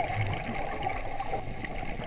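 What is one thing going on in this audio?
A scuba diver breathes through a regulator nearby, underwater.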